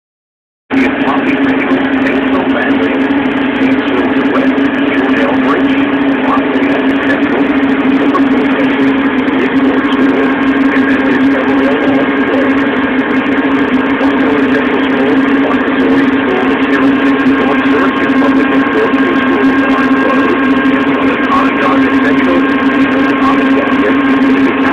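Snow sprays and hisses out of a snowblower chute.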